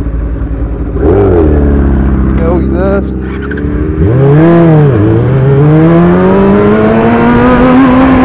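A motorcycle engine revs up loudly and accelerates, rising in pitch.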